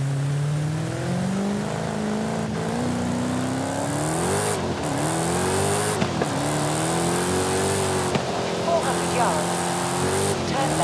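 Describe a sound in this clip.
A car engine roars and revs up through the gears.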